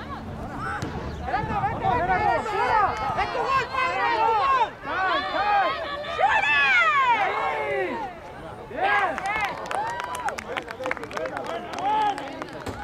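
A crowd of spectators shouts and cheers excitedly outdoors.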